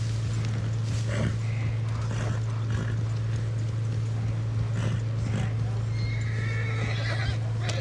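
A horse's hooves clop slowly on soft ground.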